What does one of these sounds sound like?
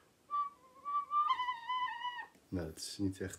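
A recorder plays a few short high notes close by.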